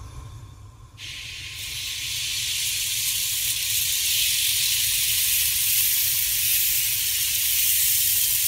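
Batter sizzles loudly in a hot pan.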